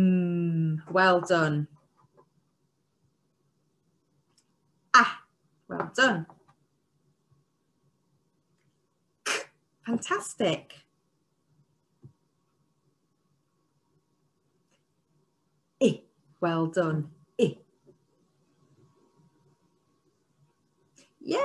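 A young woman speaks with animation into a close microphone, sounding out letters in short bursts.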